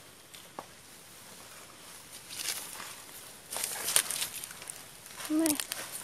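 A small hand tool scrapes into dry, hard soil.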